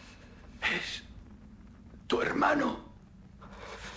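A man speaks languidly, close by.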